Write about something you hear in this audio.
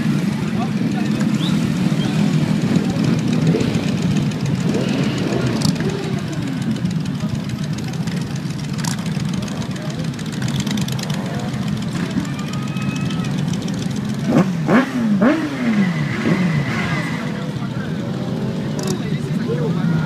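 Many motorcycle engines rumble and idle steadily outdoors.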